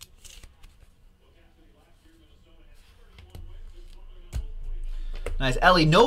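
Cardboard boxes knock and slide on a table.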